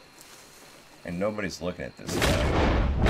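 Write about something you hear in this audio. A man speaks briefly into a microphone, close by.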